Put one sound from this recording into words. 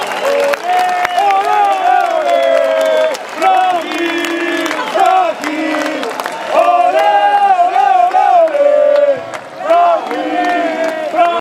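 A rock band plays live through a loud concert sound system in a large outdoor venue.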